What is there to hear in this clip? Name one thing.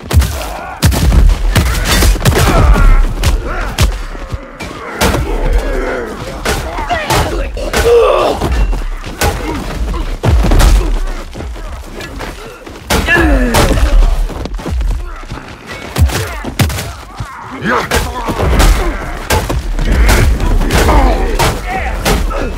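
Blows thud and splatter against bodies, over and over.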